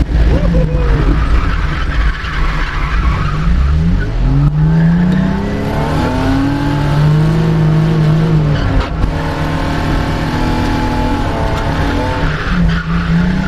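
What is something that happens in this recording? A car engine roars and revs up and down close by.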